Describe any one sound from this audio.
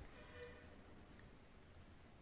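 A glass jar taps lightly against a ceramic plate.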